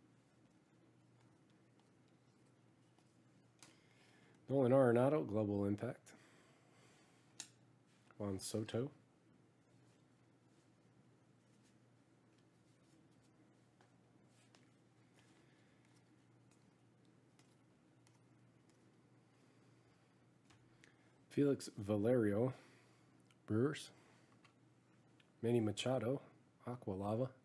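Trading cards rustle and slide against each other in a person's hands.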